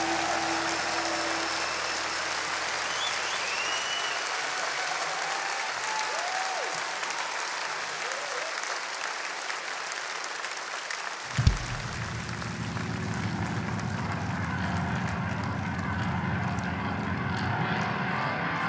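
An orchestra plays in a large hall.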